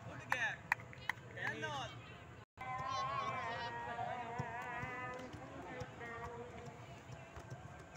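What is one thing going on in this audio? A volleyball is struck with a sharp thud.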